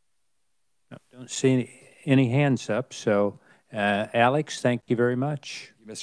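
An older man speaks through a microphone in a steady voice.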